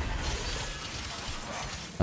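A sword clangs against metal.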